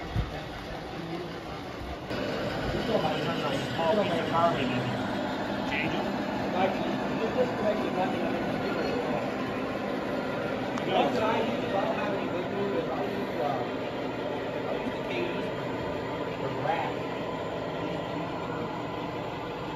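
Model trains rumble and clatter steadily along metal tracks.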